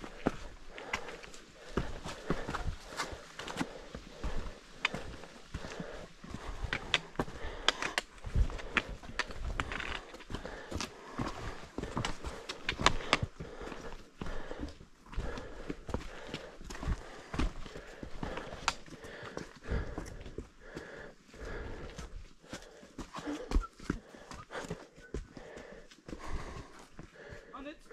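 Footsteps crunch and scuff on rocky ground close by.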